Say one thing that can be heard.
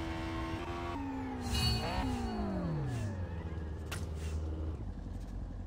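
A car engine revs once and then winds down to an idle.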